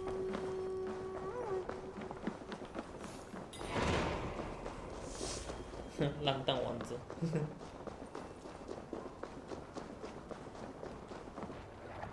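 Footsteps run quickly over wooden planks and packed snow.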